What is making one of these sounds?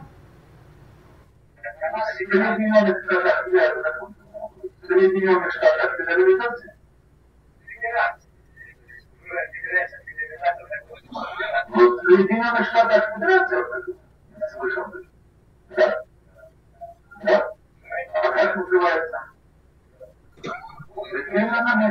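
A man answers from farther off over an online call.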